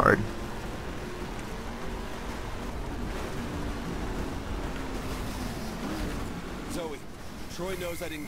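Tyres rumble over bumpy dirt.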